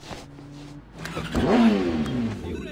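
A motorbike engine starts and revs up.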